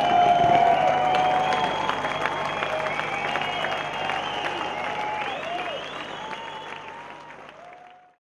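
Fireworks whistle and crackle, slowly fading away.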